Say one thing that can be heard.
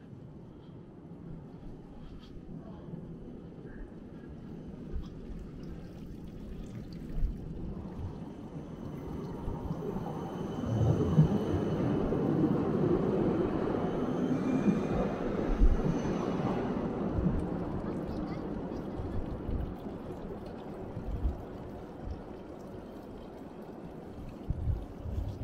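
Water trickles from a fountain spout into a stone basin.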